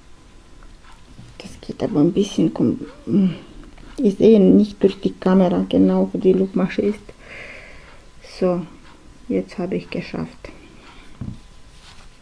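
A crochet hook softly scrapes and tugs through yarn.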